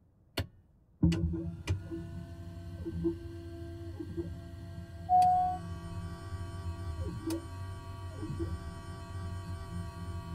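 Electronic equipment hums and whirs steadily.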